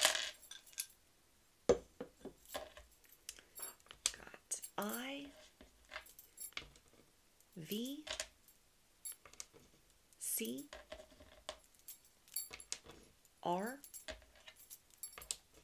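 Small wooden tiles clatter as a hand sorts through them.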